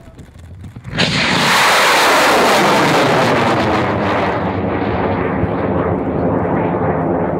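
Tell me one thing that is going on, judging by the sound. A rocket motor ignites with a loud roar that keeps rushing on as the rocket climbs away.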